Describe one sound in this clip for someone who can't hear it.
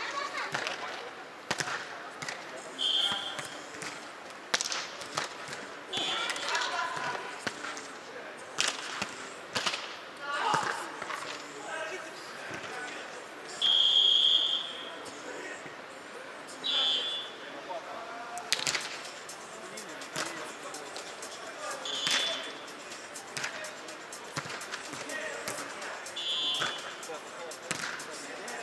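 Distant players call out and shout to each other.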